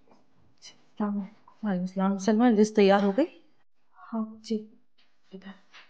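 A young woman speaks in an agitated tone, close by.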